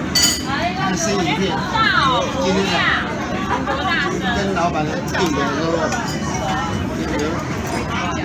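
Chopsticks and spoons clink against plates and bowls.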